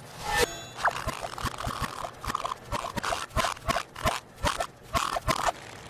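A small mechanical contraption clatters and squeaks in a quick, uneven rhythm.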